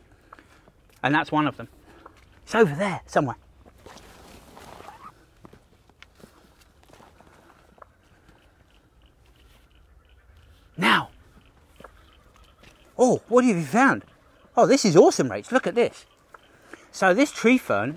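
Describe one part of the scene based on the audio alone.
A man speaks calmly close by, in short bursts.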